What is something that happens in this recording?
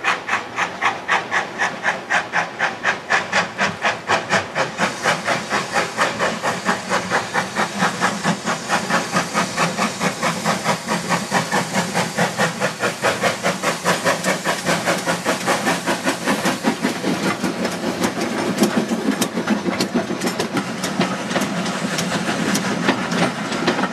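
A steam locomotive chuffs rhythmically as it approaches and passes close by.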